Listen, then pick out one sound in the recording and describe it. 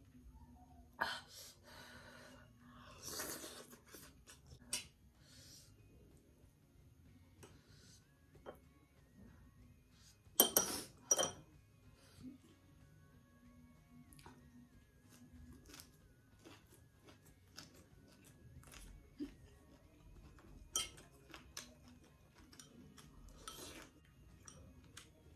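A woman slurps noodles loudly up close.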